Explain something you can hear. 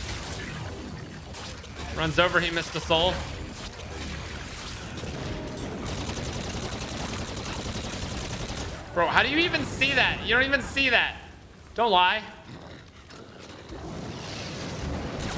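Gunfire and explosions from a video game rattle on steadily.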